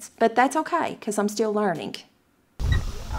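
A woman speaks with animation, close to a microphone.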